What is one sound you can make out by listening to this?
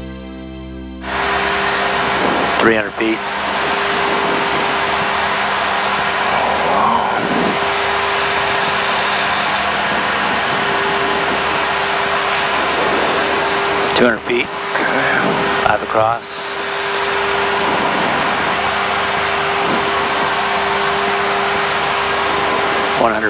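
A helicopter engine and rotor roar steadily from inside the cabin.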